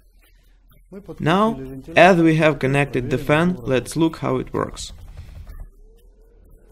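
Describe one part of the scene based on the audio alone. A middle-aged man speaks calmly, presenting to the listener.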